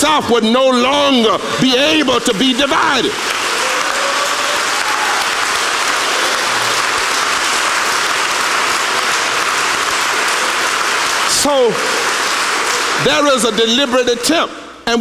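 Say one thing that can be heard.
A man preaches forcefully through a microphone in a large echoing hall.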